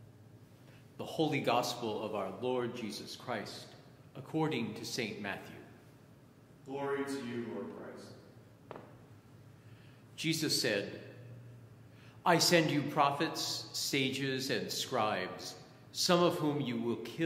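A middle-aged man speaks calmly into a nearby microphone.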